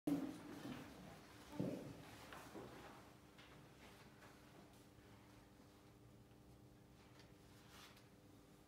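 A piano accompanies softly.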